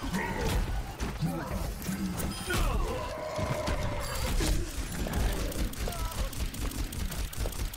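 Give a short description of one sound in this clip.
Gunfire blasts rapidly in short bursts.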